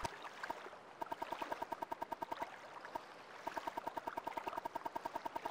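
A game menu ticks rapidly as a list scrolls.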